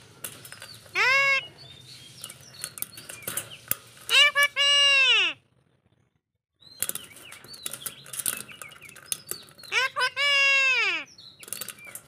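A parrot squawks loudly up close in harsh, drawn-out calls.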